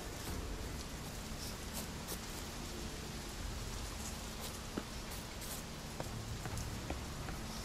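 Footsteps thud on grass and stone.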